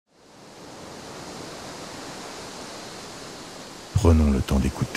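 Small waves wash steadily onto a sandy shore.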